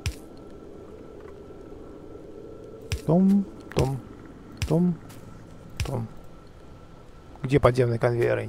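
Short clicks sound as objects are placed in a game.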